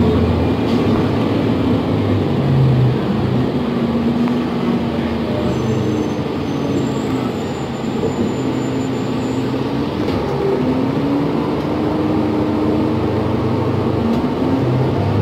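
A bus engine hums and whines steadily from inside the bus as it drives.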